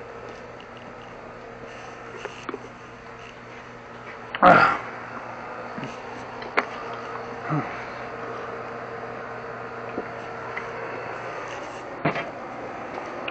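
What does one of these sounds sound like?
Footsteps scuff on a concrete floor.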